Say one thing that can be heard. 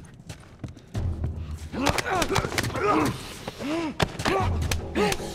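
Two men scuffle and grapple in a struggle.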